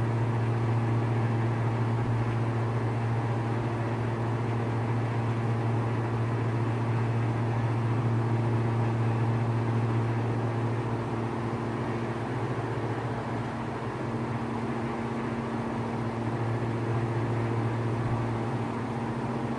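A small plane's propeller engine drones steadily, heard from inside the cockpit.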